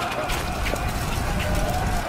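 A fire bursts into flame with a roar.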